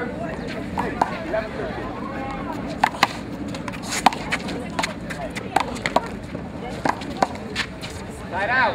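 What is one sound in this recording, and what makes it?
A rubber ball smacks sharply against a wall and hands.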